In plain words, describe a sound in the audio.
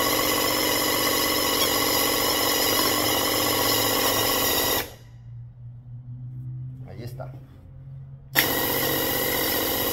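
A paint sprayer hisses loudly as it sprays.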